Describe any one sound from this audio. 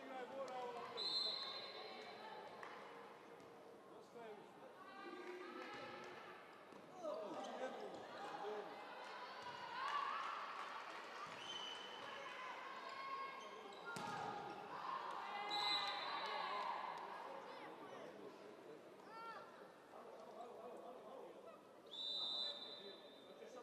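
A referee's whistle blows sharply in a large echoing hall.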